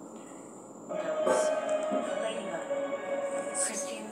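Music plays softly through a television speaker.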